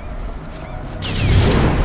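A loud burst rips out and rings on.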